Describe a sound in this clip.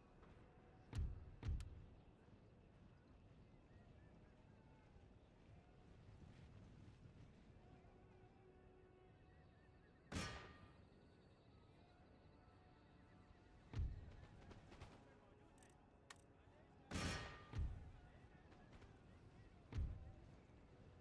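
Musket volleys crack and boom across open ground.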